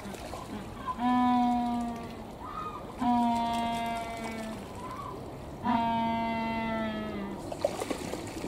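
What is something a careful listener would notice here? A penguin brays loudly in long honking calls.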